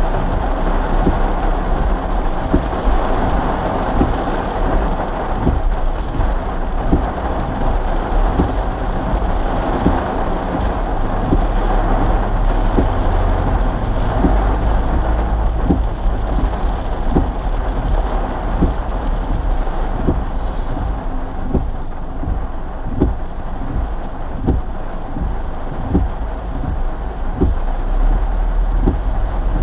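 Rain patters on a car windshield.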